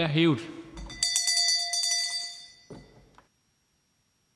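A bell rings loudly and rings out.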